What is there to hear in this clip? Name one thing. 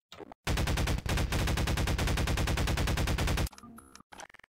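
An automatic gun fires in a fast, steady stream.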